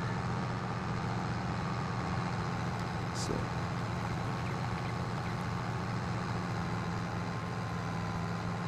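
A tractor engine drones steadily.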